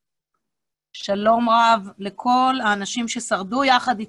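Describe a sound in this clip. A woman speaks into a microphone over an online call.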